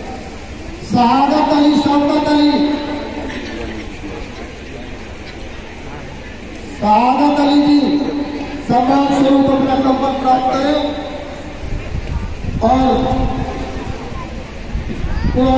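A man speaks loudly through a microphone over a loudspeaker, in short bursts.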